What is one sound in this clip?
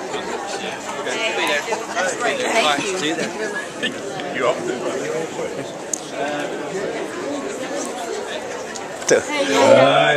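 A crowd of men and women chatters indoors.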